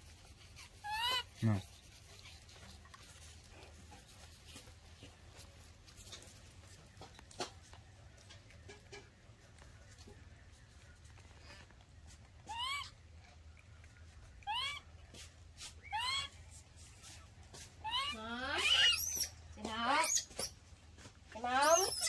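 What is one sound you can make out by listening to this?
Young monkeys squeak and chirp in short, high calls.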